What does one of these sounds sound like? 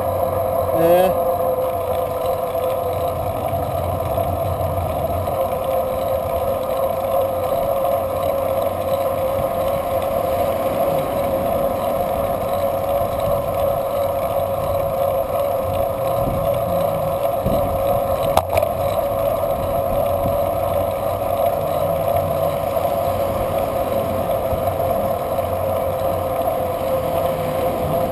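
Wind rushes steadily past while riding a bicycle outdoors.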